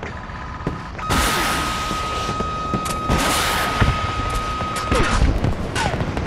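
A missile launches with a loud whooshing rush.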